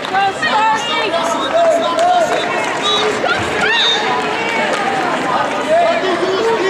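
A crowd in a large indoor arena cheers and shouts.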